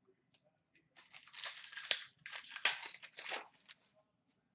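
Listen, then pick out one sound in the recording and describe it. Trading cards rustle and slide between fingers.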